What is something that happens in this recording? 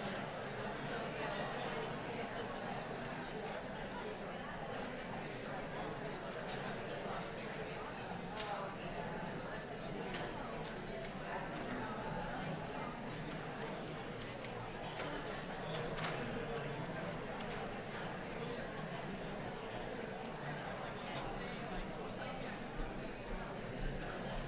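A crowd of people murmurs and chats quietly in a large room.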